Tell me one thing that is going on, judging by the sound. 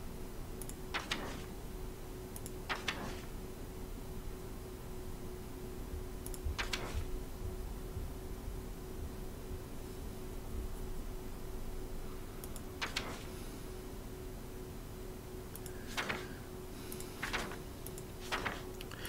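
A page flips with a short papery swish, again and again.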